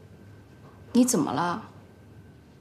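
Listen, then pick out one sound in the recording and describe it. A young woman asks a short question softly, close by.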